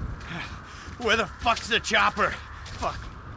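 A second man shouts a question.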